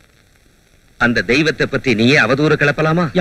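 A second man answers loudly and with emotion, close by.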